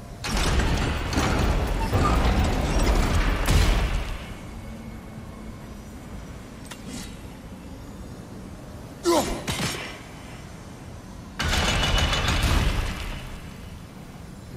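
A heavy spiked wheel grinds and rumbles as it turns.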